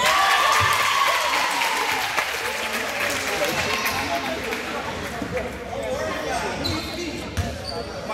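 A crowd of spectators chatters in a large echoing gym.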